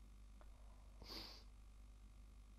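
A woman sniffs sharply close by.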